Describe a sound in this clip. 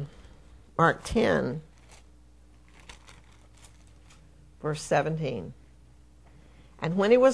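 An elderly woman speaks with emphasis into a microphone, in short bursts with pauses.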